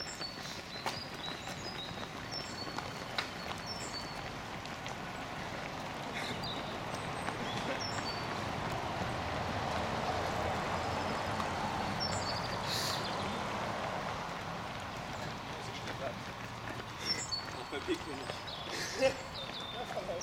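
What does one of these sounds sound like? Many running feet patter and shuffle on pavement.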